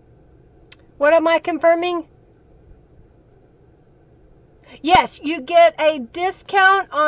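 A middle-aged woman speaks with animation into a microphone.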